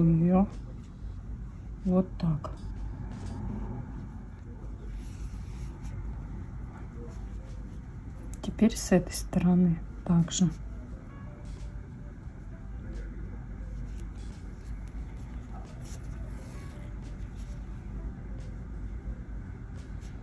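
Soft yarn rustles faintly as a crochet hook pulls loops through it.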